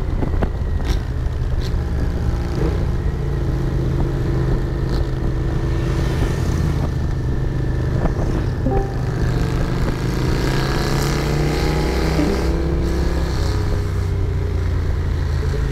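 Wind roars past.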